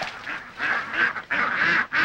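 A flock of ducks quacks loudly.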